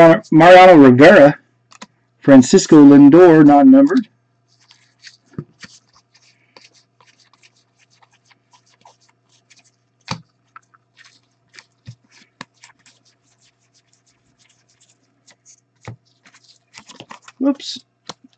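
Trading cards softly tick and rustle as hands shuffle them.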